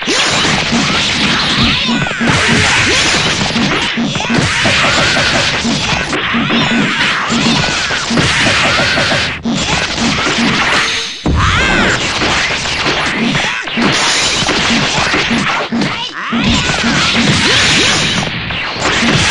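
Punches and energy blasts hit rapidly in a fight.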